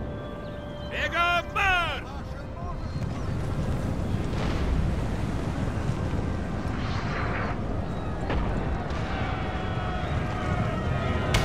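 A low rumble of distant battle noise rolls on steadily.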